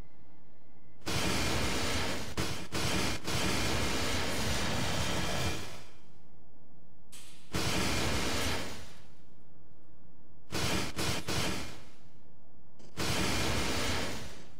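A heavy rotary gun fires in long, rapid bursts.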